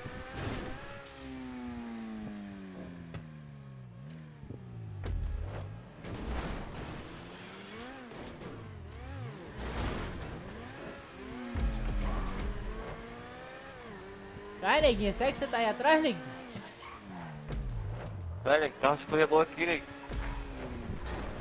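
A sports car engine revs hard and shifts through its gears.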